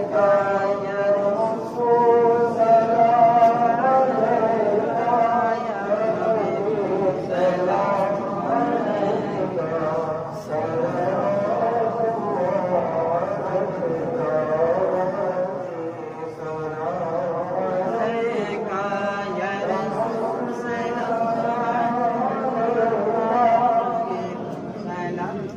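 A young man sings a melodic chant through a microphone and loudspeakers.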